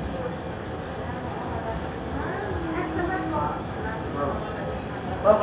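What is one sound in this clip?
A man and a woman talk nearby.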